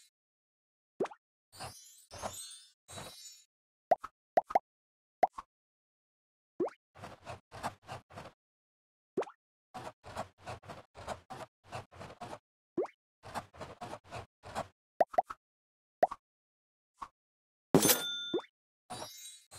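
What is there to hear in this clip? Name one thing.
Short bright pops sound as crayons are picked.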